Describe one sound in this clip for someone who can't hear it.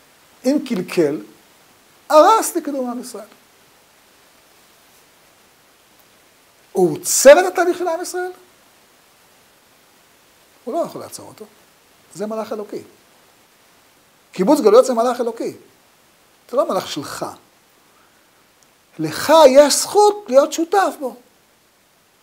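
An elderly man speaks calmly and with expression, close to a microphone, pausing between phrases.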